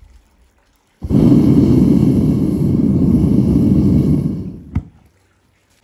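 A furnace burner roars loudly.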